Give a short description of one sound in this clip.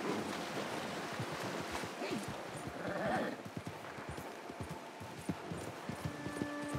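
A horse's hooves thud on soft ground at a trot.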